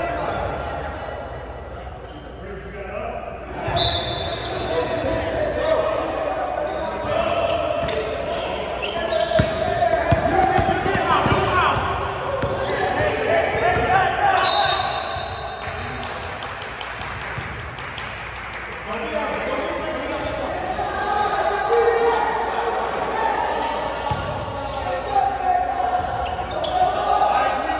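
Men shout and call out to each other across an echoing gym.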